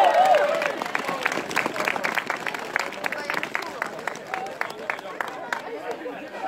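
A crowd claps hands in a quick, steady rhythm.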